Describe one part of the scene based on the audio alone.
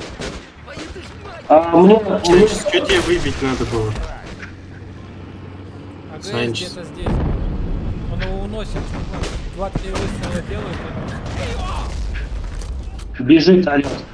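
Shells explode with heavy booms.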